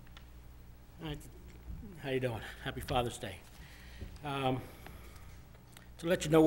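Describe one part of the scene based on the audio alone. A middle-aged man speaks calmly over a microphone.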